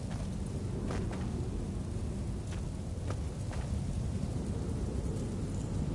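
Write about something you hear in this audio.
Leafy bushes rustle as someone pushes through them.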